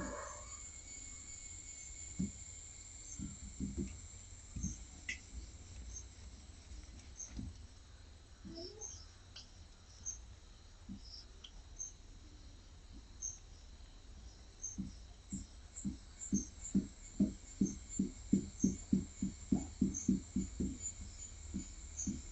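A marker squeaks and taps against a whiteboard in quick strokes.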